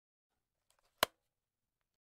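A mouse clicks once.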